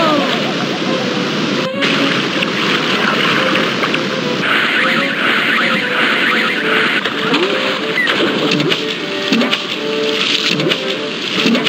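Water splashes as a small raft drops into a pool.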